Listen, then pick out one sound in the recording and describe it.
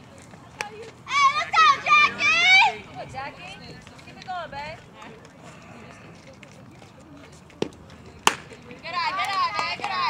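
Young women shout and cheer loudly across an open field.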